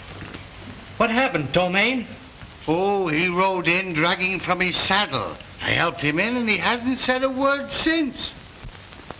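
A man talks to another man in a low, earnest voice.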